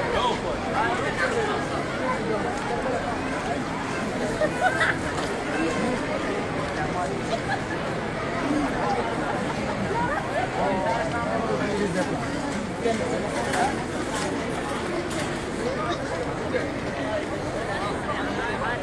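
A large crowd of men and women chatters all around outdoors.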